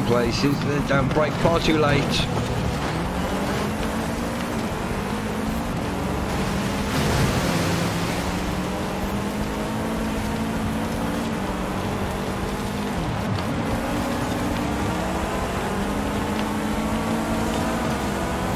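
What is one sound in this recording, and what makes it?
A car engine revs and hums steadily.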